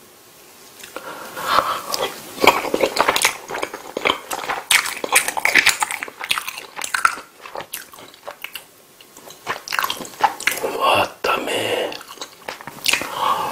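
A man chews food wetly and loudly, close to a microphone.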